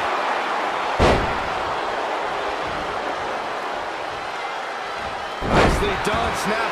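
A body slams down hard onto a wrestling mat.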